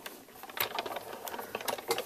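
A hand-cranked machine rolls with soft clicks and rustles.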